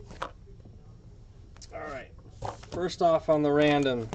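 Dice rattle and tumble inside a cardboard box.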